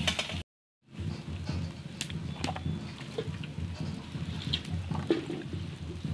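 Water splashes as hands stir vegetables in a bowl.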